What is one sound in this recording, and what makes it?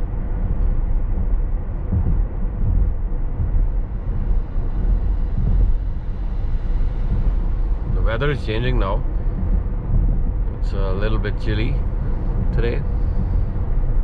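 Tyres rumble steadily on a road from inside a moving car.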